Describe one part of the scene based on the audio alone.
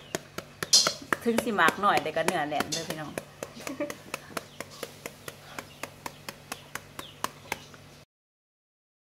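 A knife chops rapidly into a vegetable.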